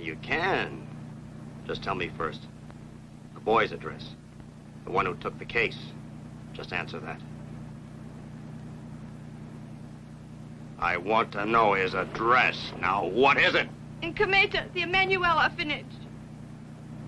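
A man speaks quietly and tensely.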